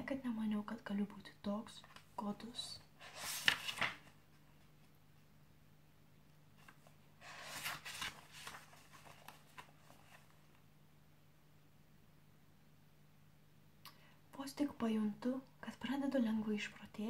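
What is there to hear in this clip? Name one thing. A young woman reads aloud softly, close to the microphone.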